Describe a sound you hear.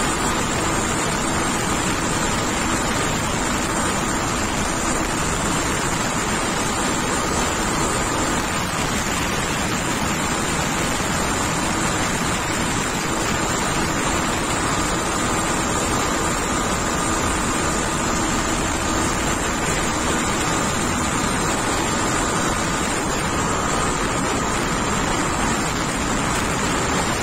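Wind rushes loudly past the rider.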